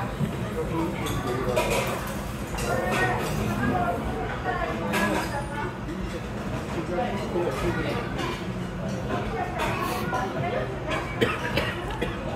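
A ceramic bowl clinks against dishes.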